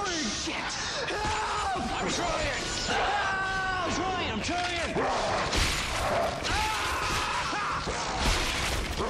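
A machine whines up and down in pitch.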